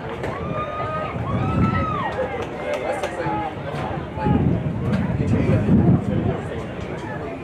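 Spectators chat quietly nearby outdoors.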